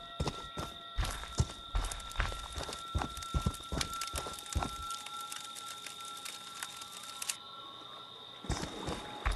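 Heavy footsteps crunch over leaves and dirt.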